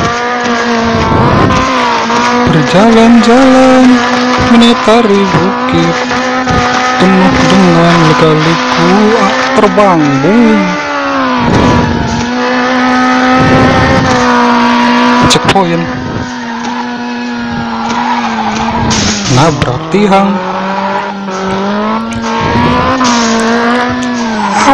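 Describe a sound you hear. A racing car engine roars and revs steadily.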